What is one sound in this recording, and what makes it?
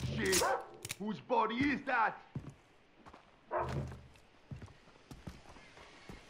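A flare pistol breaks open and is loaded with a metallic click.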